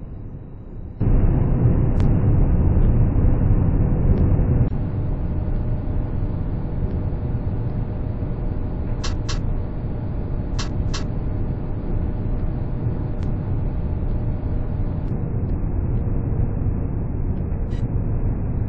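A tram motor hums and rumbles steadily as the tram rolls along rails.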